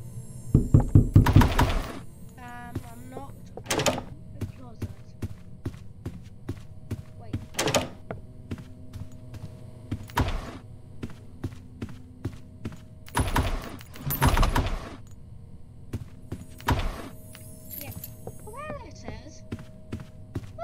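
Footsteps thud quickly and evenly on a wooden floor.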